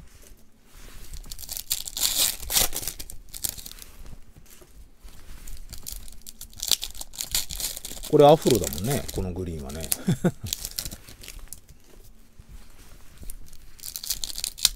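Trading cards rustle and slide as they are shuffled.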